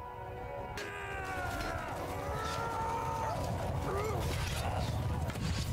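A large crowd of warriors runs, feet tramping on grass.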